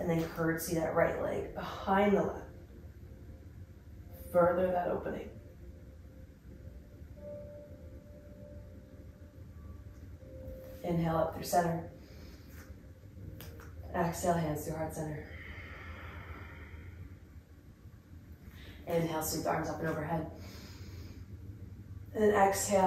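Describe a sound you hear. A young woman speaks calmly and clearly, in short phrases with pauses.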